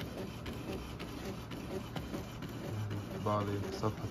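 A printer whirs as it feeds out a sheet of paper.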